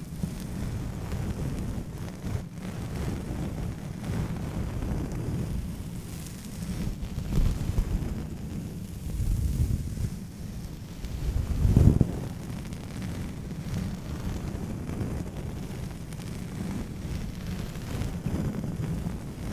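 A soft brush sweeps and rustles close against a microphone.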